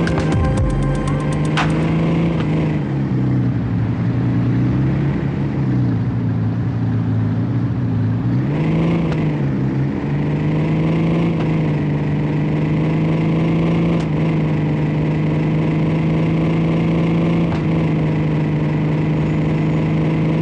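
A car engine hums steadily, its pitch dropping as it slows and rising as it speeds up again.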